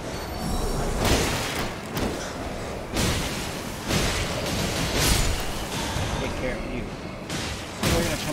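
A sword slashes and strikes with sharp, heavy impacts.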